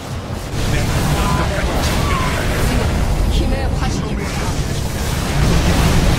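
Explosions boom repeatedly in a game battle.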